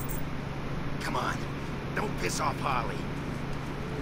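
A man speaks in a gruff, urging voice.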